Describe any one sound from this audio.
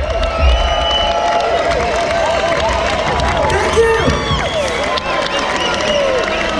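A crowd cheers and whistles close by.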